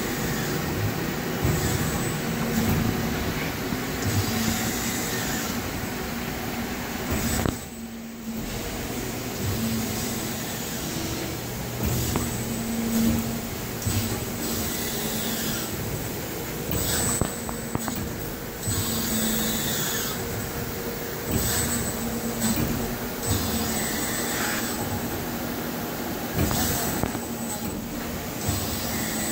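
Industrial machinery hums steadily nearby.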